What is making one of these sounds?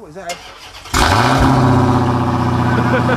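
A car engine starts and rumbles loudly.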